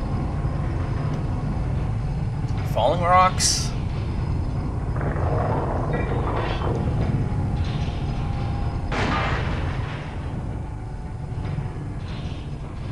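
A mine cart rumbles steadily along rails.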